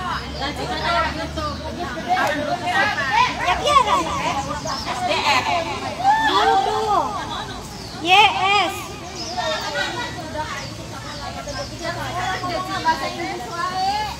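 A woman talks nearby in a lively voice.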